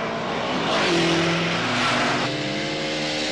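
A car engine hums as a car drives past.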